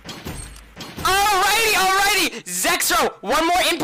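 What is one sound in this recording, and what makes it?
A man speaks excitedly into a microphone, his voice rising to a shout.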